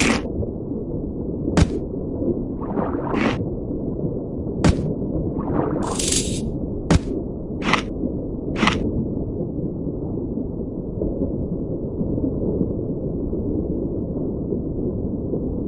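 A low underwater rumble drones steadily throughout.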